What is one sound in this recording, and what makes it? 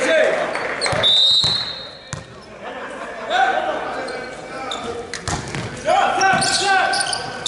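A volleyball is struck hard and echoes in a large hall.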